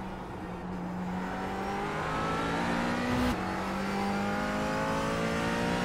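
A racing car engine roars and climbs steadily in pitch as it accelerates.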